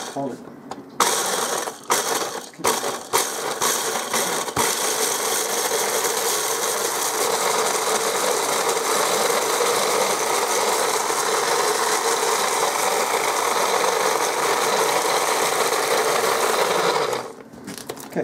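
A small kitchen appliance motor whirs loudly and steadily, then stops.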